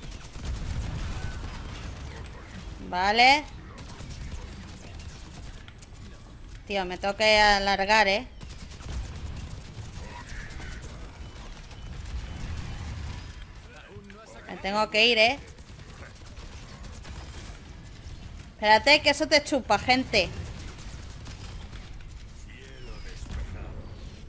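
Rapid gunfire rattles on and off.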